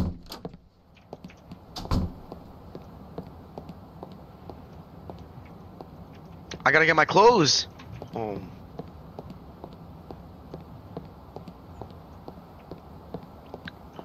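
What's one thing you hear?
Footsteps tap steadily on hard pavement.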